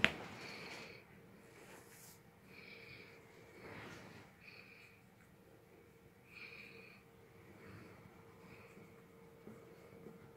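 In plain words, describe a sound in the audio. A puppy whimpers and grunts softly.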